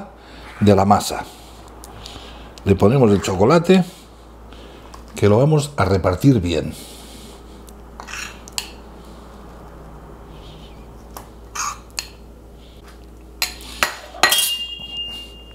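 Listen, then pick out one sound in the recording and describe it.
A metal spoon scrapes and clinks against a ceramic bowl.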